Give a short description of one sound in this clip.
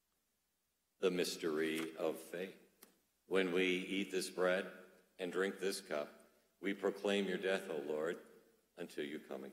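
A man speaks slowly and clearly into a microphone, in a room that echoes a little.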